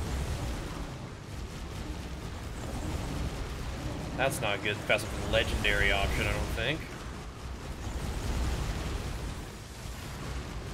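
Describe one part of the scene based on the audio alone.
Video game battle effects clash and rumble.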